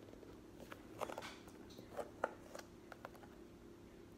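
Hard plastic clicks and rattles as a container is opened.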